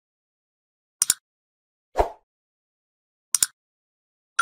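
A mouse button clicks twice.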